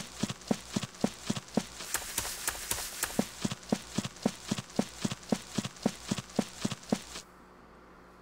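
Footsteps shuffle in a quick, steady rhythm.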